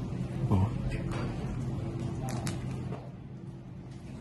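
A man bites and chews a wrap.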